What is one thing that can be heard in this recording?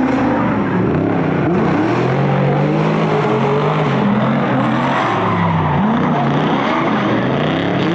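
Tyres screech on wet tarmac.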